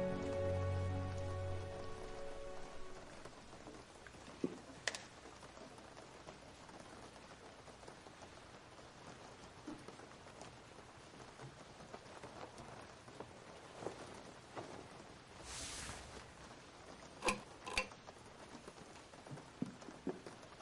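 Rain falls steadily outside.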